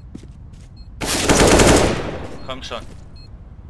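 An assault rifle fires a burst.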